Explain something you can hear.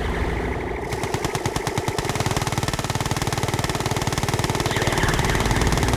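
A video game laser weapon zaps.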